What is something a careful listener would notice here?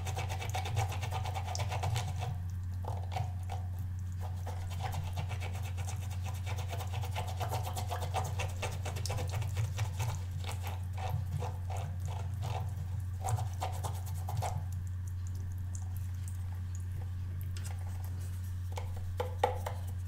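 A small brush scrubs and scratches against a rubber pad.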